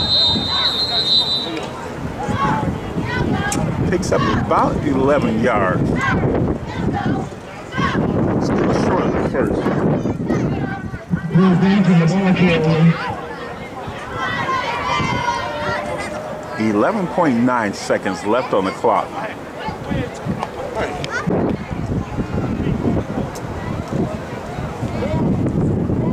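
A crowd of men and women talks and cheers loudly nearby.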